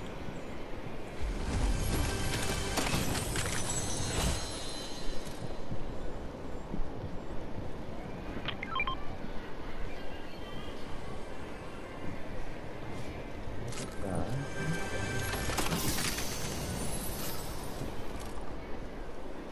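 A treasure chest creaks open with a shimmering chime.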